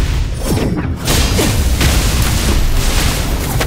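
An energy burst explodes with a loud crackling boom.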